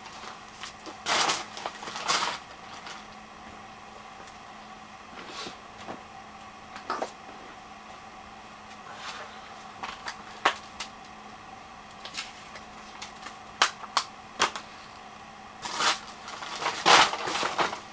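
Clothing rustles and brushes close by.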